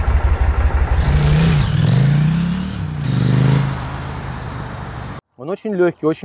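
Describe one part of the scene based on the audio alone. A motorcycle accelerates past, its engine revving up and down.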